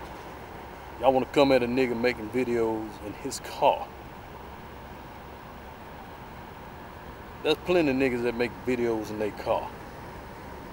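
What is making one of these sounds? A man speaks close to the microphone in short bursts.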